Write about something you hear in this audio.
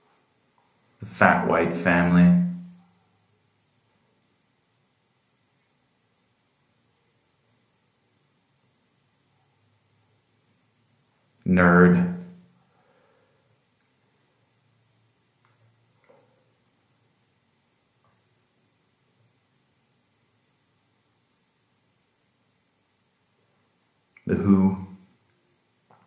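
A man speaks calmly in short phrases close by, with long pauses between them.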